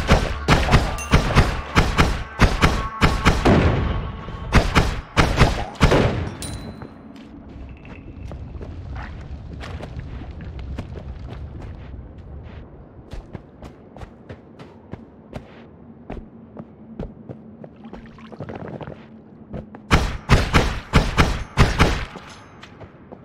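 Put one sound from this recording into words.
Sharp game hits and blasts crack in quick bursts.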